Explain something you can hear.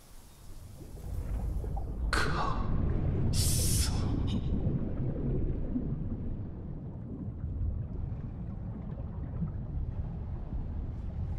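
A low underwater rumble swells and drones on.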